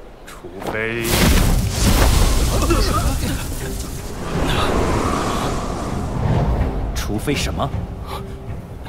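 A deep rushing roar swells as winged fighters swoop through the air.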